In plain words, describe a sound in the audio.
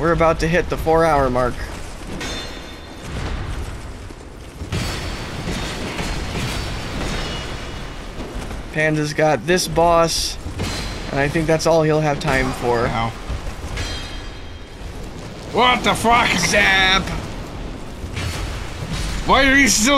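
Two men talk with animation into close microphones.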